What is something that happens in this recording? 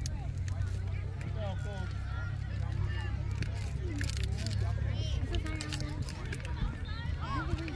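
Children shout and call out in the distance across an open field.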